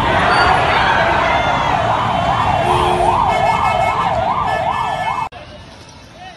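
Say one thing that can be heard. A large crowd shouts and clamours close by.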